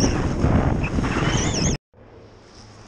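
Wind roars loudly past.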